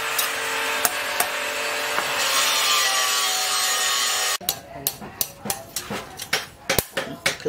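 Blacksmith's tongs clink as they turn hot steel on an iron block.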